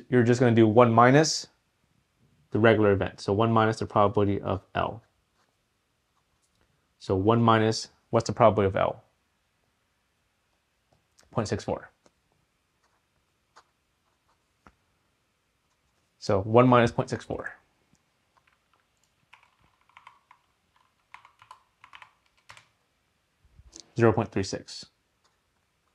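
A man speaks calmly and clearly into a nearby microphone, in short bursts with pauses.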